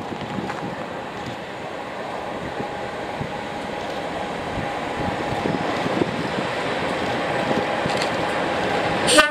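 A diesel locomotive rumbles and drones as it approaches, growing steadily louder.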